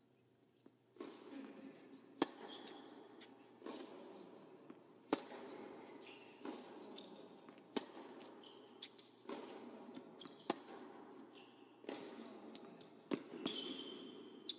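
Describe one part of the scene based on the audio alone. Tennis balls are struck hard back and forth in a fast rally, echoing in a large hall.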